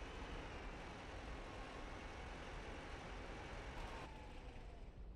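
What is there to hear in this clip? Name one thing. A vehicle engine rumbles as it drives slowly.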